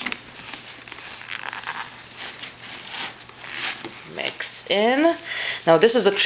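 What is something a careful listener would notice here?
Gloved hands squeeze and rub crumbly dough in a plastic tub, rustling softly.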